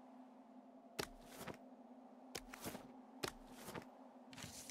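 Footsteps knock on wooden boards.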